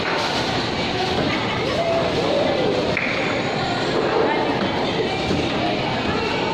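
Bowling balls clunk against each other in a large echoing hall.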